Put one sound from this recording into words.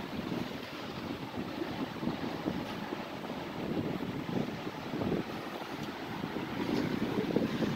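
Ocean waves wash onto a beach nearby.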